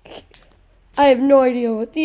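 Cards flick and shuffle against each other.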